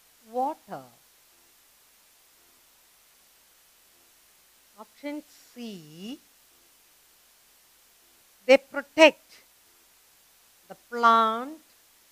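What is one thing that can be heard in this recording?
A woman speaks calmly and clearly, in short phrases with pauses.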